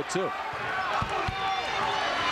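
A basketball thumps as it is dribbled on the court.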